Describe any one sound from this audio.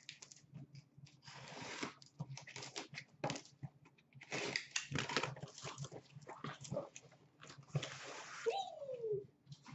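Cardboard boxes scrape and thump as they are lifted and moved.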